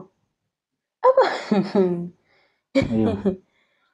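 A young woman answers cheerfully, close by.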